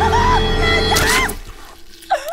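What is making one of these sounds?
A young woman screams loudly and shrilly up close.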